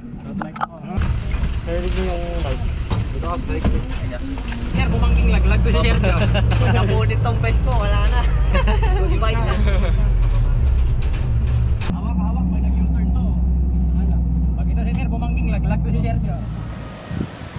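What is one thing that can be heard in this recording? A vehicle engine rumbles loudly while driving.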